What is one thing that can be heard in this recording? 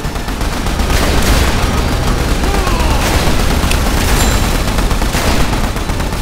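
Rapid gunfire and explosions crackle and boom without pause.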